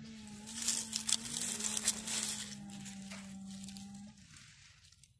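A hand rustles through dry leaves and twigs.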